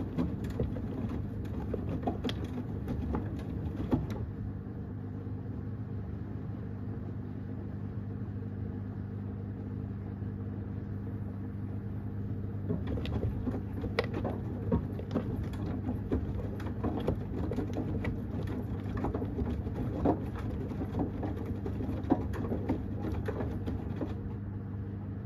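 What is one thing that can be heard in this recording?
A washing machine drum tumbles wet laundry with sloshing and thumping.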